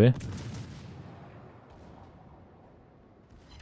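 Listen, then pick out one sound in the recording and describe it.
Heavy naval guns fire with deep booms that rumble away.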